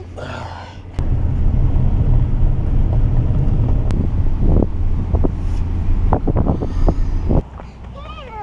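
A car's engine and tyres rumble low and steady from inside the car.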